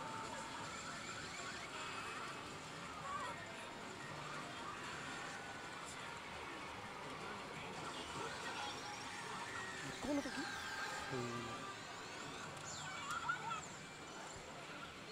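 Many gaming machines chime and clatter.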